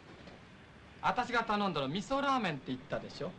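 A man speaks up close.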